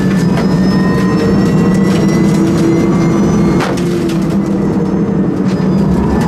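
A race car's body rattles and knocks over bumps.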